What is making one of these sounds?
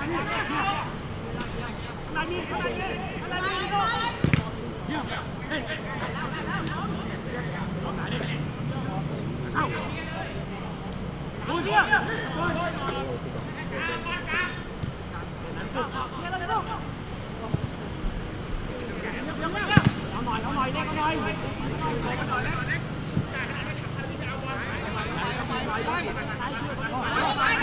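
Footballers shout and call out to each other across an open pitch.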